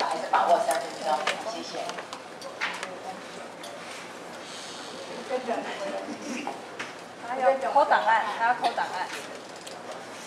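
An elderly woman speaks calmly into a microphone, heard through a loudspeaker in an echoing hall.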